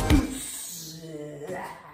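A fist thuds against a rubber training dummy.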